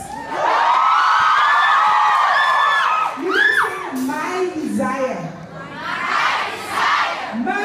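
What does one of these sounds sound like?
A woman sings loudly into a microphone, amplified through speakers.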